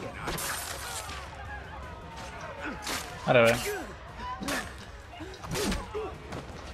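Heavy blows land in a brawl with sharp thuds.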